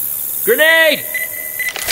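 A bomb beeps rapidly.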